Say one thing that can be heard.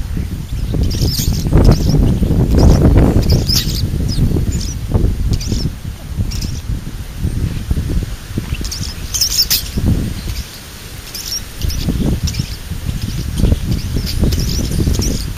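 Birds chirp and squawk close by.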